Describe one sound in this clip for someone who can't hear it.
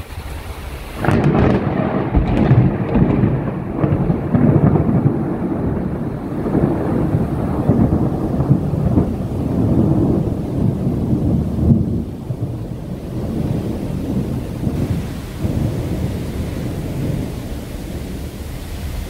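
Wind blusters loudly outdoors.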